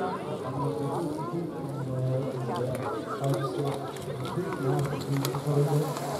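Bicycles rattle past over grass.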